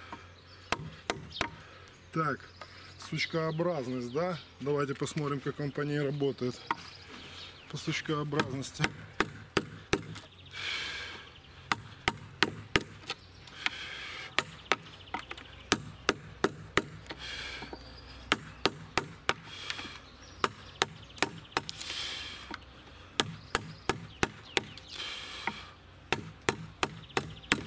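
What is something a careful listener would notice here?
A chisel scrapes and pares shavings off wood.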